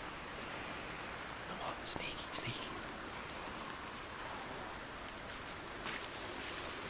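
Footsteps shuffle softly through grass.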